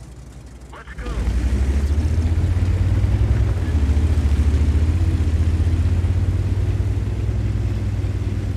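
A tank engine roars loudly as the tank drives off.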